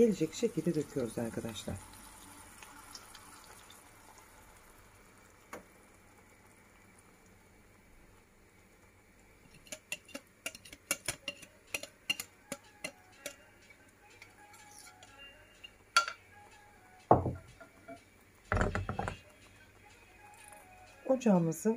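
Oil sizzles and crackles softly in a pan.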